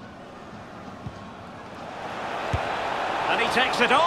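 A football is struck with a thud.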